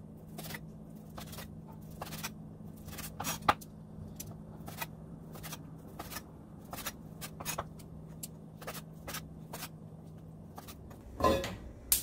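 A knife chops on a wooden cutting board with quick, sharp taps.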